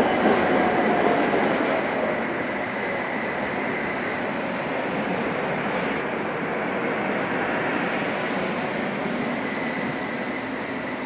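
A tram rumbles past on its rails close by.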